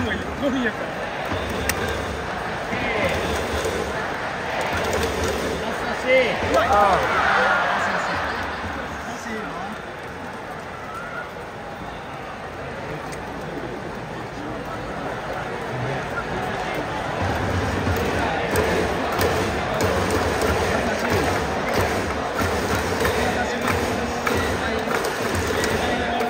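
A large stadium crowd cheers and chants outdoors.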